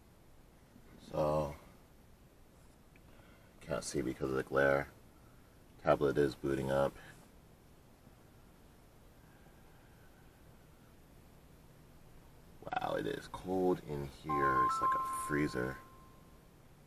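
A young man speaks calmly close by, in short bursts.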